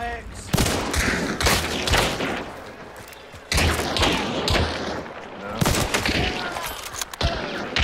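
Gunshots boom in quick bursts.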